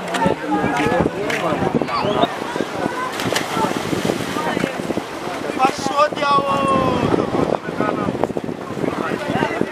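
Swimmers splash in choppy water.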